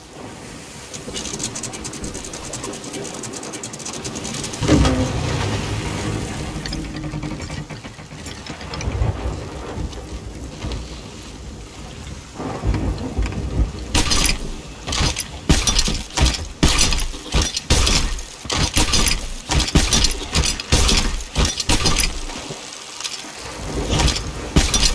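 Stormy waves crash and roar around a ship.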